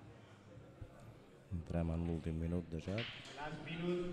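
Pool balls clack together.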